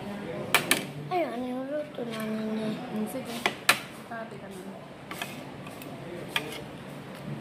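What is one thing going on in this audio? Metal cutlery clinks against a plate.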